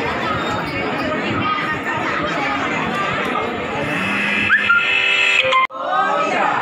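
A large crowd chatters and murmurs close by.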